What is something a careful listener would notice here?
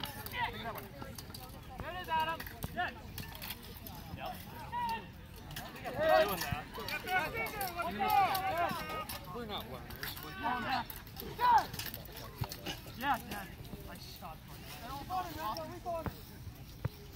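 A crowd of men and women shout and call out outdoors at a distance.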